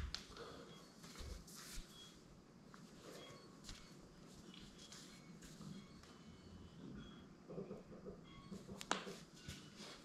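Footsteps thud on a hard floor close by.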